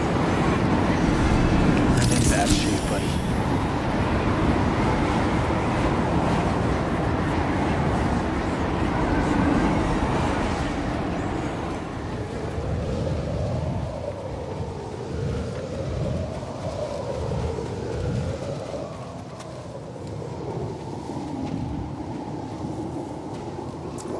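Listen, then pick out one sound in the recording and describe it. Footsteps crunch over sand and gravel.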